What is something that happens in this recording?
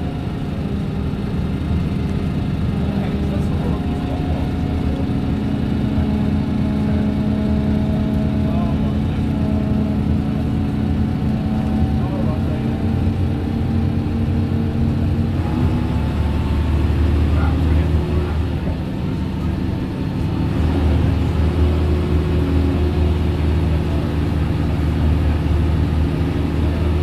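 A Leyland National diesel bus engine drones under load, heard from inside the bus.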